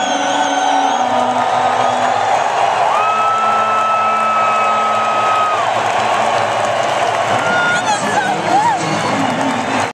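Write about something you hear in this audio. A young woman sings through loudspeakers in a large echoing arena.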